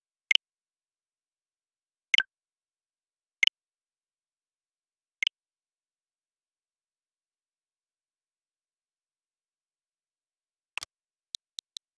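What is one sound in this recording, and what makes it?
Menu confirmation sounds chime sharply a few times, with pauses between.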